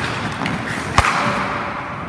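A hockey stick strikes a puck.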